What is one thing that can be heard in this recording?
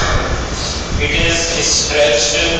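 A man explains calmly, heard through a microphone.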